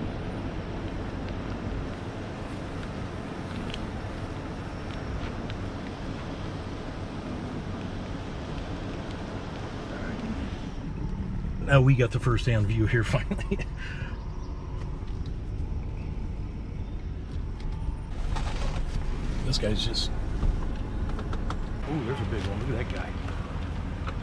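A V10 gasoline pickup truck engine idles.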